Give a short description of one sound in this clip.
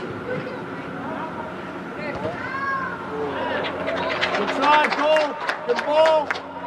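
Young players shout and call out across a large echoing indoor hall.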